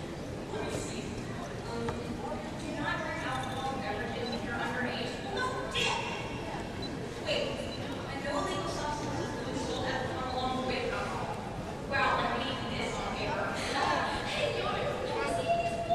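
An audience murmurs in a large hall.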